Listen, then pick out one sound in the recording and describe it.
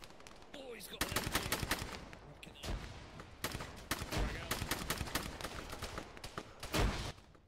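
Rapid gunfire rattles nearby in sharp bursts.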